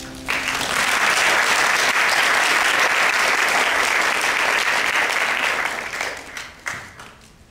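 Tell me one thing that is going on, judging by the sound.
An audience applauds loudly in an echoing hall.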